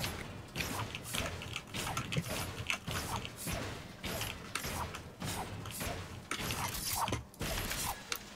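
A pickaxe strikes metal again and again with sharp clangs.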